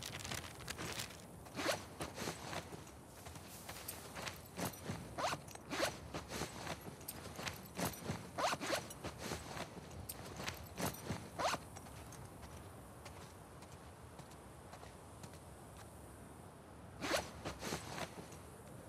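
Footsteps rustle through tall grass in short bursts.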